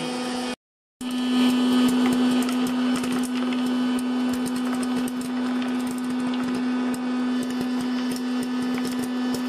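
Popcorn pops and patters into a plastic bowl.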